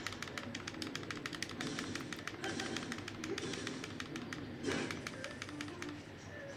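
Sharp electronic zaps and clashes from a fight ring out rapidly.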